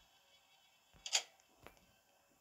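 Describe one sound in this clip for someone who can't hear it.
A door swings open with a sharp clatter.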